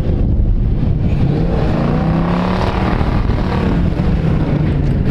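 An engine revs as a vehicle drives closer.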